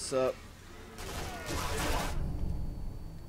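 A rifle fires with loud, echoing bangs.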